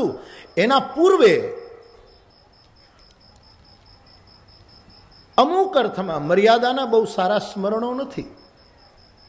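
An elderly man speaks with animation into a microphone, pausing between phrases.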